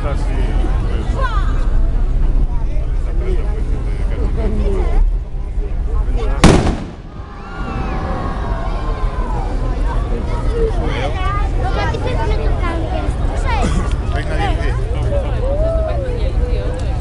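Young men shout and cheer nearby, outdoors.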